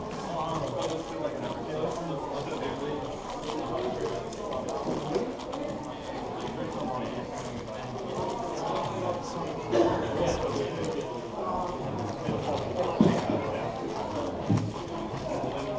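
A plastic six-by-six speed cube clicks and clatters as it is turned rapidly.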